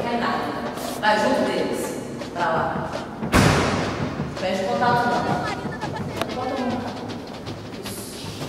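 A group of young people cheer and whoop loudly in an echoing room.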